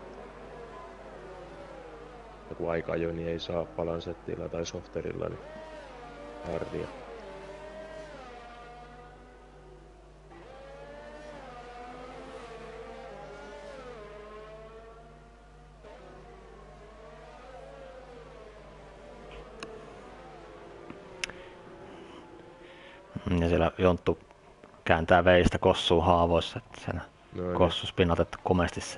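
A racing car engine whines, rising and falling in pitch as it accelerates and shifts gears.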